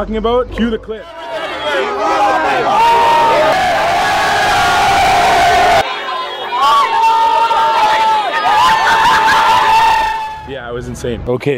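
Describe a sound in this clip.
A crowd of young fans screams and shouts.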